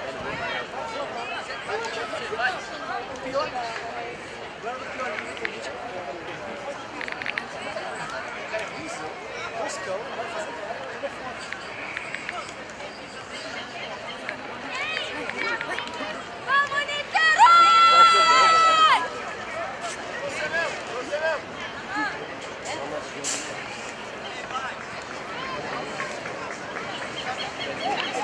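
A distant crowd murmurs and cheers outdoors.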